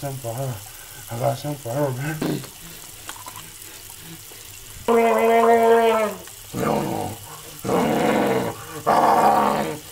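A man brushes his teeth vigorously.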